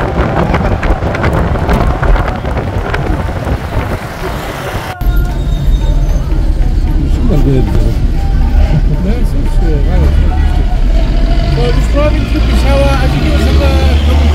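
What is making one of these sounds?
Traffic rumbles by on a busy road.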